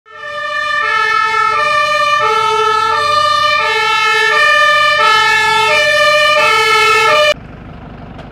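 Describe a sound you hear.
A fire engine siren wails in two alternating tones.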